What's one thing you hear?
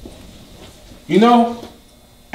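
A man speaks loudly close by.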